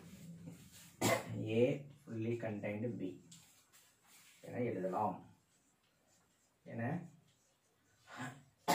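A man speaks calmly and slowly, close by, in short phrases.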